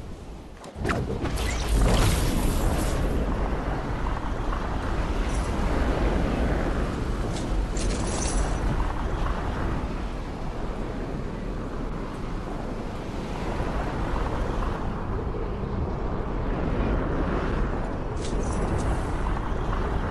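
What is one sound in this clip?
Wind rushes steadily past a glider in flight.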